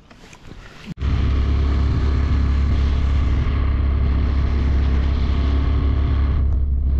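Wind rumbles against the microphone while riding.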